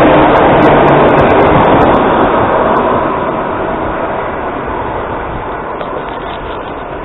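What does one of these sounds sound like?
A train rushes past close by with a loud roar that slowly fades.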